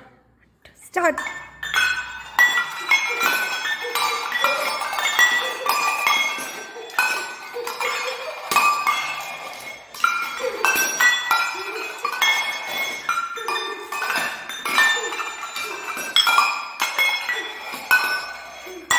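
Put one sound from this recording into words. Metal bowls ring with bright pitched notes as they are struck, playing a tune.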